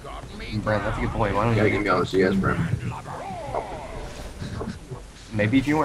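Magic spells blast and crackle in a fight.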